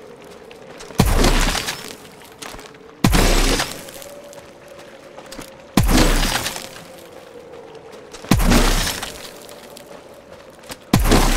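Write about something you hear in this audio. A gun fires in loud bursts with sharp cracks.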